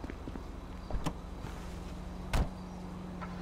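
A car door clicks shut.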